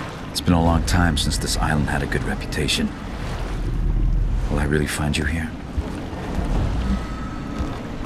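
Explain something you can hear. Stormy waves crash and roar against a pier.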